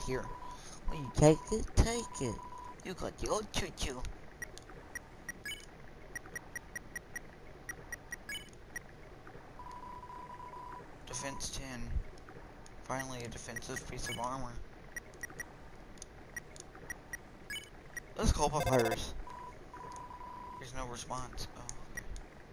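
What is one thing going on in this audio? Rapid soft beeps chatter as game text types out.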